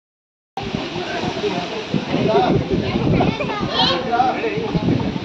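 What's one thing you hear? Many children chatter and talk together outdoors.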